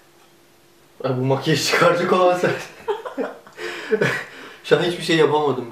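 A young man laughs softly.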